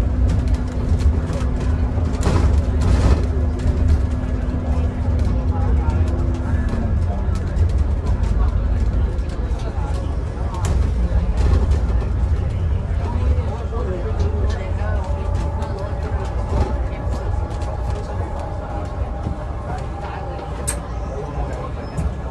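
The bus body rattles and clicks as it rolls along.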